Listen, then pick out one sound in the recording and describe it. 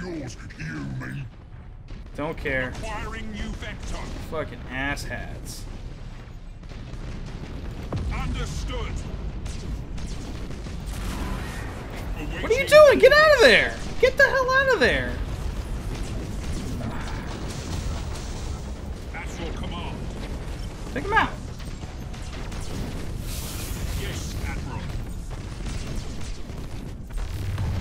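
Space guns fire in quick bursts of zaps and blasts.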